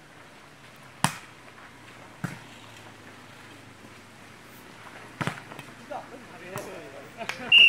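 A volleyball is struck with sharp slaps outdoors.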